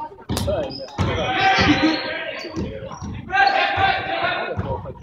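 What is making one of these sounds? Young players and spectators shout and call out across the hall.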